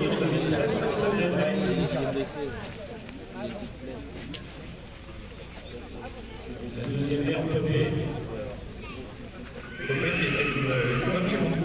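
Horse hooves thud softly on sand.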